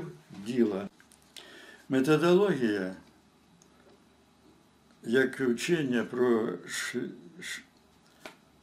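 An elderly man speaks calmly close by, in short phrases with pauses.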